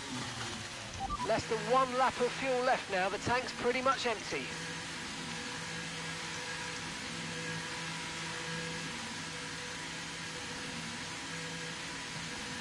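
A racing car engine hums quietly at low revs, held to a steady pace.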